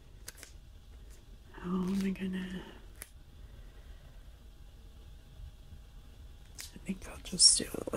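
Paper rustles and crinkles as fingers handle it.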